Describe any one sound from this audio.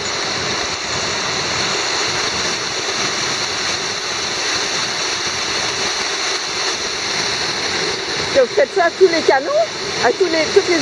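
Water pours loudly over a weir in a steady rushing roar.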